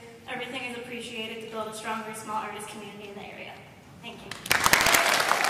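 A young girl sings into a microphone, close and clear.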